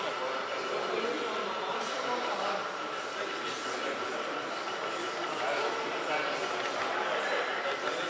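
People chatter in a hall with an echo.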